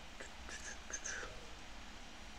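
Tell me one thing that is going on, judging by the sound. A young man speaks briefly and quietly into a nearby microphone.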